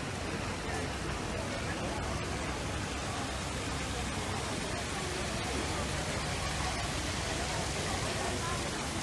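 A crowd of people chatters outdoors in a busy street.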